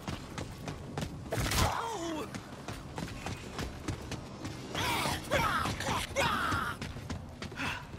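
Zombies growl and snarl nearby.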